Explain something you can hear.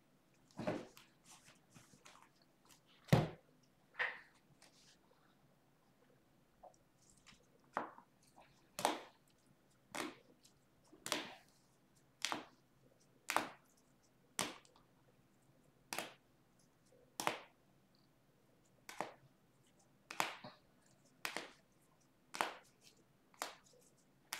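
Plastic card sleeves click and rustle as cards are shuffled by hand.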